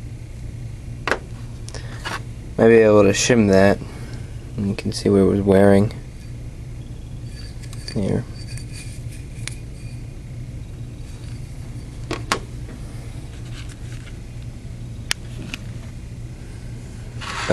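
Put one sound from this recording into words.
Small metal parts clink against a metal surface.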